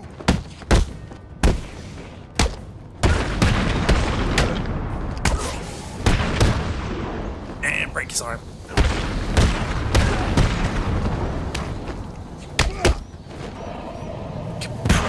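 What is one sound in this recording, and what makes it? Punches and kicks land with heavy thuds in quick bursts.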